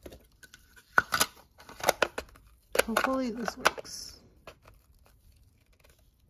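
A plastic lid snaps and clicks into place.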